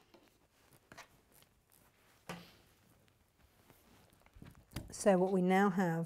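Scissors snip through fabric.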